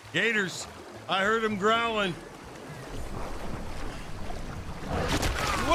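A person wades through water, splashing.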